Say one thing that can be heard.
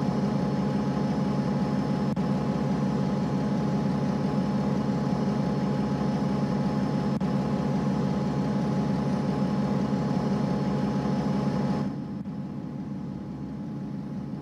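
A bus engine idles with a steady low hum, then drops quieter.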